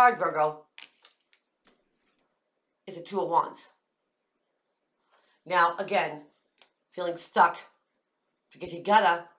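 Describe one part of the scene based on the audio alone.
A middle-aged woman speaks calmly and close to a microphone, in short phrases with pauses.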